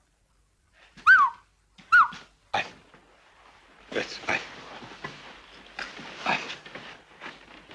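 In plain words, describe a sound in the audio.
A boy cries and sobs.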